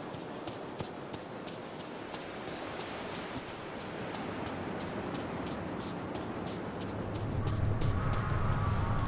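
Quick footsteps patter on sand.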